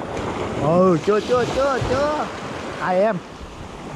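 Small waves wash and break on a shore.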